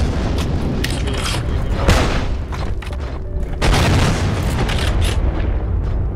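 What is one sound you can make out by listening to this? A machine gun is reloaded with metallic clicks and clanks.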